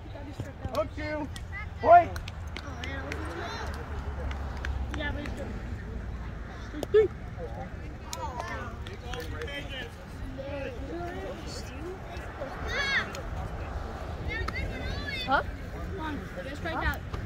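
Children and adults chatter and call out nearby outdoors.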